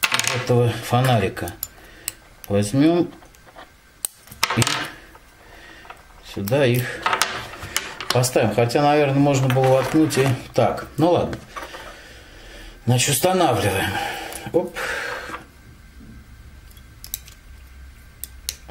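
Small plastic parts click and tap as they are fitted together.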